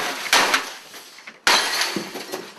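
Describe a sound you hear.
A sledgehammer smashes repeatedly against a desk.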